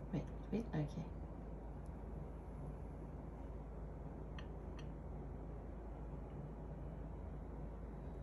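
A spoon scrapes gently against a pan.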